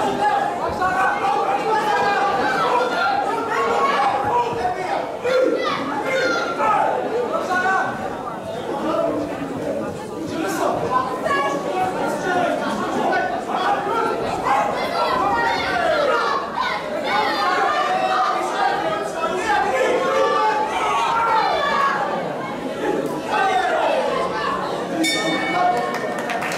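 A crowd of spectators shouts and cheers around a boxing ring.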